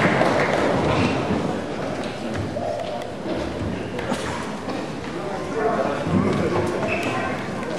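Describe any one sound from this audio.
A crowd of people murmurs and chats in a large room.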